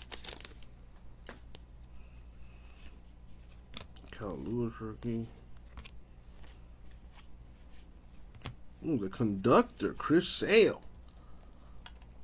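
Trading cards shuffle and slide against each other in hands.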